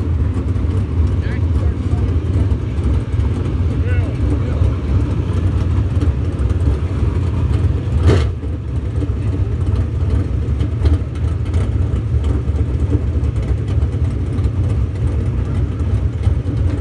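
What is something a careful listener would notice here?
Race car engines roar loudly outdoors.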